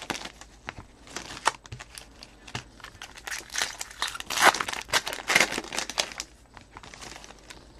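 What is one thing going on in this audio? Foil wrappers crinkle and rustle as they are torn open by hand.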